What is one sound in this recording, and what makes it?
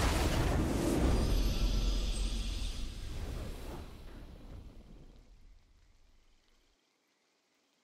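A triumphant game fanfare swells and slowly fades away.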